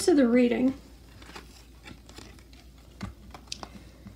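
Playing cards rustle softly as hands pick them up.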